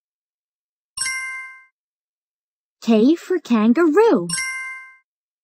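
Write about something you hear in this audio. A bright electronic chime rings out and fades.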